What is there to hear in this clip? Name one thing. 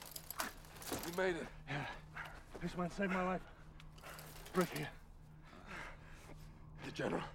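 A man speaks in a low, strained voice up close.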